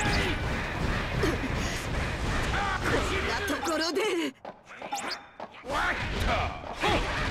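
Heavy blows and crashes of a fight thud in quick succession.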